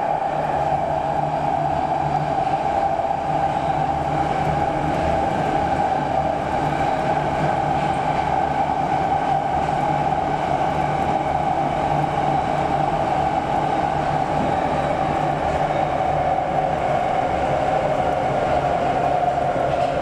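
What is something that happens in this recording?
A train's wheels whine and screech steadily on the rails.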